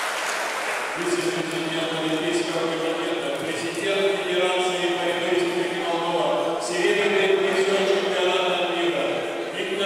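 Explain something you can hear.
A second man speaks into a microphone over loudspeakers.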